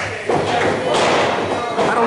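A kick smacks against a wrestler's body.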